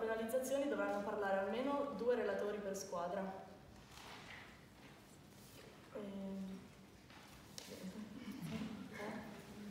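A young woman reads out a speech in a large echoing room.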